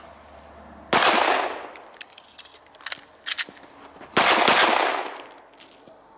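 A pistol fires sharp, loud shots that echo outdoors.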